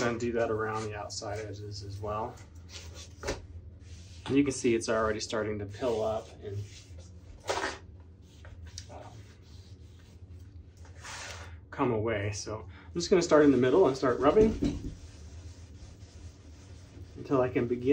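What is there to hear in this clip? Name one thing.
A cloth wipes across a smooth board with a soft rubbing sound.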